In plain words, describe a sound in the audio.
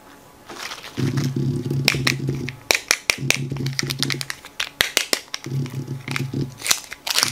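Foil wrapping crinkles as it is peeled off.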